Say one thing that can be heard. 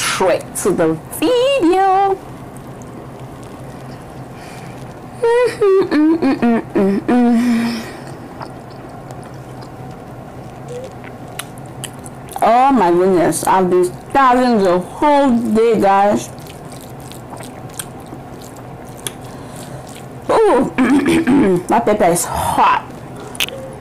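A young woman speaks calmly and expressively close to a microphone.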